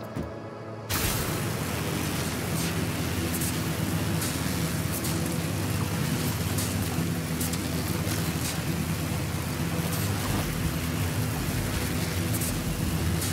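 A pulley whirs steadily as it slides along a cable.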